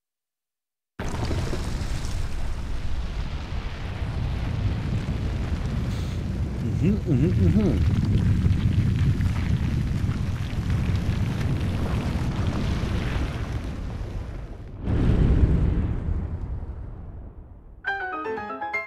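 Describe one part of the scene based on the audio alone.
A huge stone structure rises out of the ground with a deep, steady rumble.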